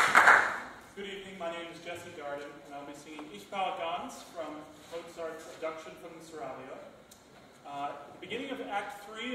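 A young man speaks calmly to an audience.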